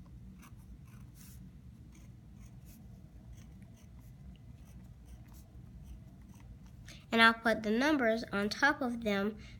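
A felt-tip marker scratches and taps softly on paper.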